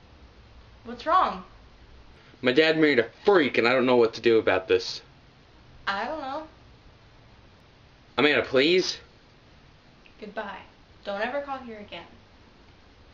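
A young woman talks on a phone.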